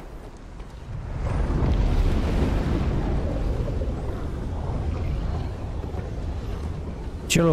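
A waterfall roars nearby.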